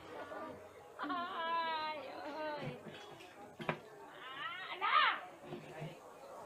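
A toddler laughs and squeals.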